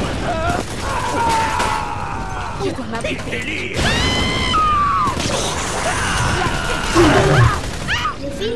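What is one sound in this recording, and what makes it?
A burning man screams in pain.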